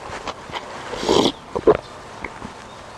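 A young man slurps broth from a bowl.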